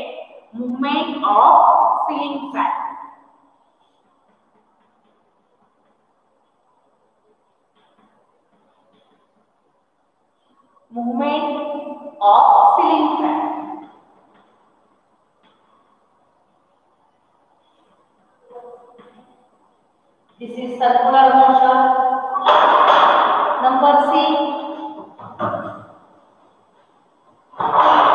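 A woman speaks clearly and slowly nearby.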